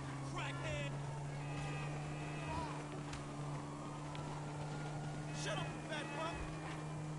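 A motorcycle engine hums at speed.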